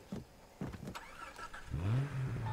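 A car engine starts and revs.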